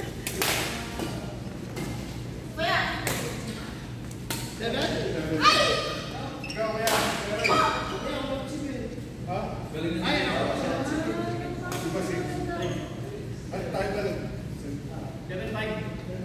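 Shuttlecocks are struck with sharp pops of rackets in a large echoing hall.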